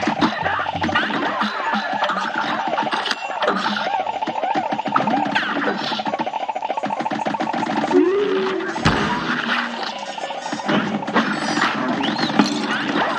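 Rapid cartoon gunfire pops and crackles continuously.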